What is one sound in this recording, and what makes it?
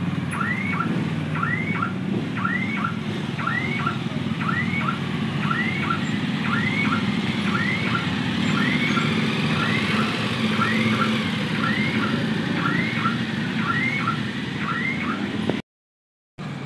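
Motorcycle engines rumble as several bikes ride slowly past, close by.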